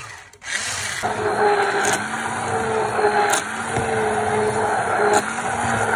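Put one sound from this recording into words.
An electric hand blender hums steadily in thick batter.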